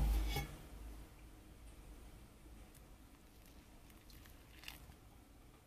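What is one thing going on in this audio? Water pours gently from a kettle onto coffee grounds.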